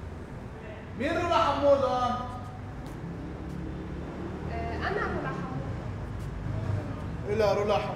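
A young woman speaks quietly and with emotion, close by.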